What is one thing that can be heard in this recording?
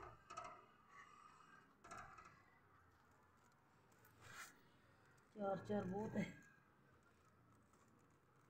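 Fingers press and rustle dry potting soil in a pot.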